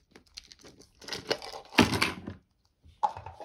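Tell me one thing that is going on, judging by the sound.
A plastic capsule clicks and snaps open.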